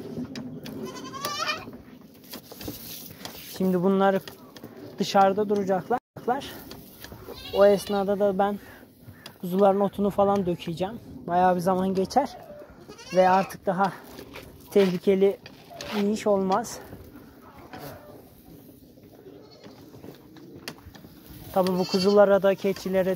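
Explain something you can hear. Goats bleat loudly and repeatedly nearby.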